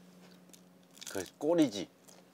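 A young man bites into crisp food with a crunch.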